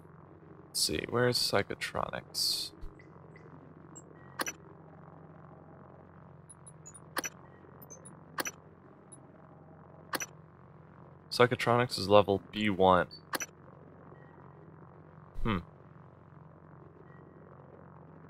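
Short electronic clicks sound now and then as a menu is browsed.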